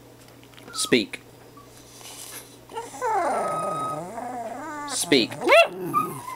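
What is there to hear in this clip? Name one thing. A small dog whines and yowls in rising and falling tones close by.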